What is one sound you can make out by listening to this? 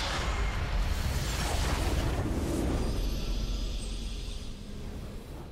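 Magic spells whoosh and crackle loudly in a burst.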